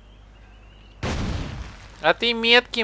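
A fire bursts with a loud whoosh and roar.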